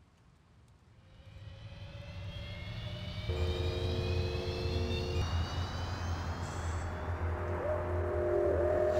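A flying vehicle's engine hums and swells steadily.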